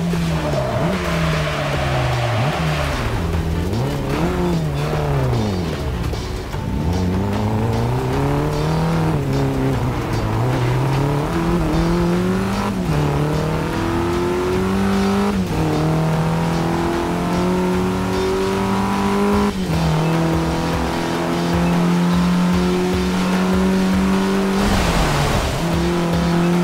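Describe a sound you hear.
Car tyres skid and hiss on a wet track.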